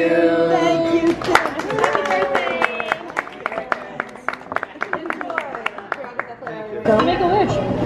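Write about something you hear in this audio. People clap their hands rapidly.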